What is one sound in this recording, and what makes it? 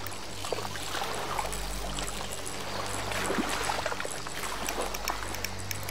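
Water laps gently nearby.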